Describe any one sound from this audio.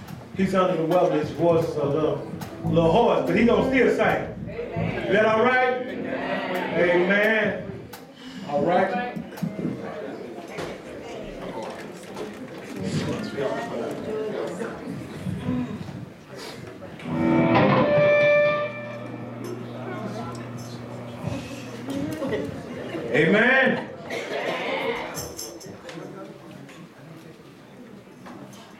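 A man plays an electric guitar.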